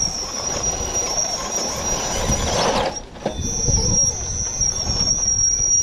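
A small electric motor whines steadily at a high pitch.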